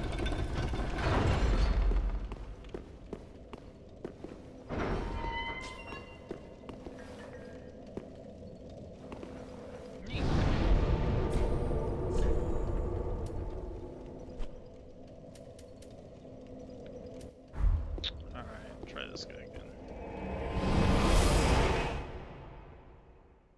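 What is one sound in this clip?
Flames roar and whoosh in bursts.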